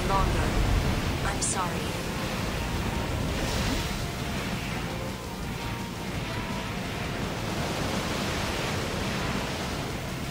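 A robot's thrusters roar as it boosts low over water.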